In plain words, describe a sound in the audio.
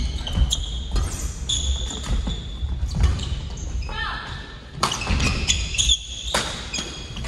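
Shoes squeak sharply on a wooden floor.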